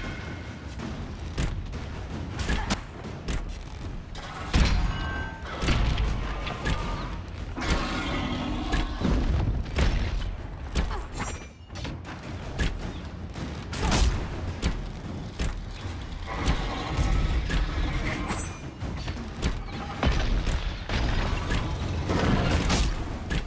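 Weapons strike a dragon with sharp hits.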